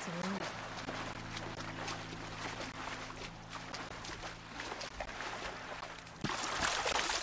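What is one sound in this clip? Footsteps wade and splash through shallow water.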